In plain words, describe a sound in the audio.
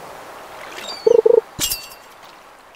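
A fishing bobber plops as a fish bites.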